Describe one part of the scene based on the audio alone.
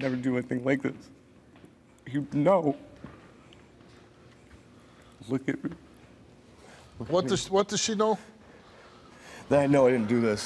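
A man speaks softly and comfortingly, close by.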